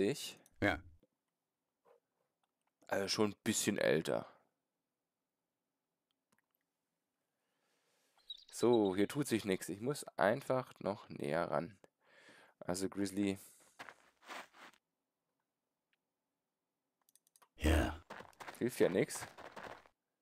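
A man speaks with animation, close to a microphone, in bursts with pauses.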